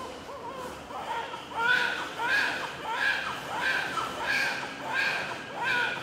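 A newborn baby cries loudly in short, repeated wails close by.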